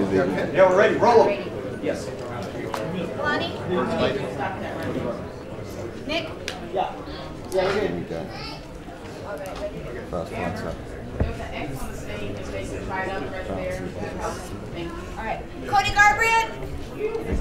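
A man speaks through a microphone over loudspeakers in an echoing room.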